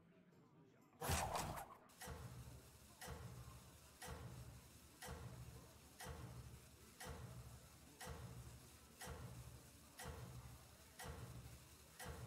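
A countdown timer ticks loudly once every second.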